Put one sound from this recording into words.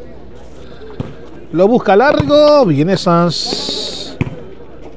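A ball is struck with a hand.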